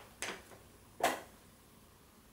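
A small wooden plate is set down on a mat with a knock.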